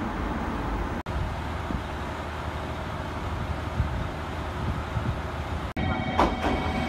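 A diesel train engine idles nearby.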